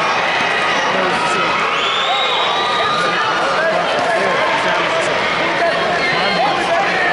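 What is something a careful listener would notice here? Sneakers squeak on a mat.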